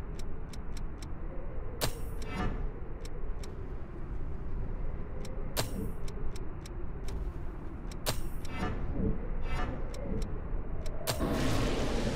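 Menu clicks tick sharply and quickly, now and then.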